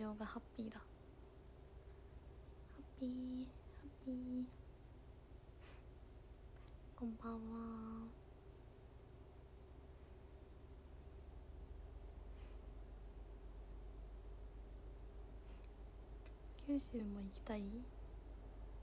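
A young woman speaks softly in short bursts, close to a phone microphone.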